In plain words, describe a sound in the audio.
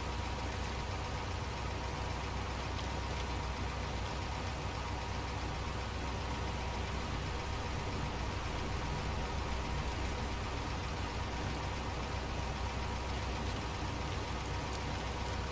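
A heavy truck engine rumbles steadily as the truck drives.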